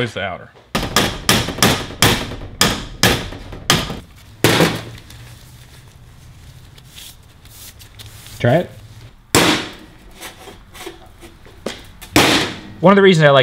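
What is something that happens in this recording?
A hammer strikes metal in sharp, repeated blows.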